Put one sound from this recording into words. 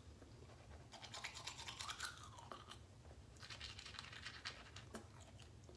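A toothbrush scrubs against teeth.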